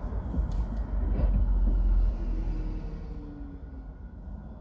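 A bus passes close by with a deep engine rumble.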